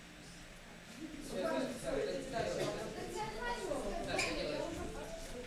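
Children chatter and move about.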